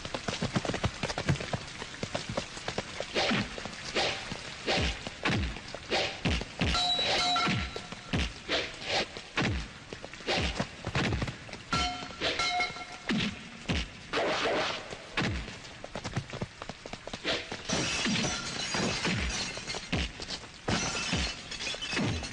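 Punches and kicks land with loud, sharp thuds.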